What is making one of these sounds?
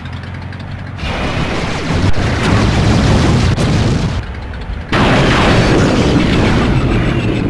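Weapons fire in loud, rushing bursts.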